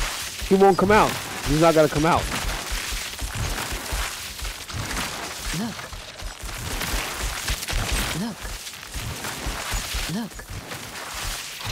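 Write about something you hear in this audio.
Lightning spells crackle and zap in a game battle.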